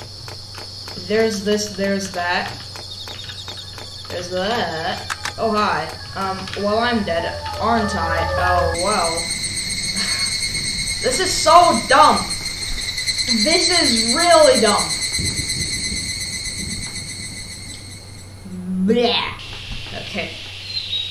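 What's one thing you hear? A young boy talks into a microphone, close and with animation.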